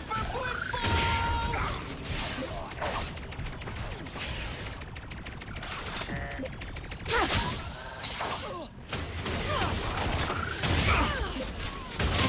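Gunshots fire in short bursts.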